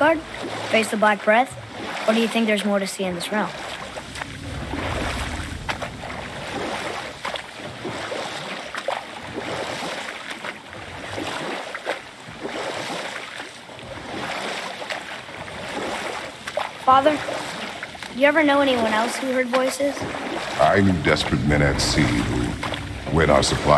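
Oars splash and paddle steadily through water.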